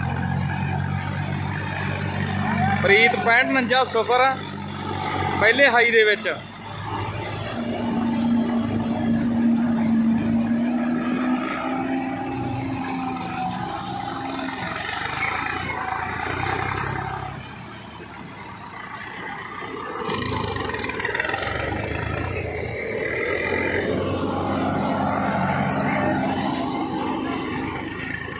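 Tractor engines rumble steadily close by.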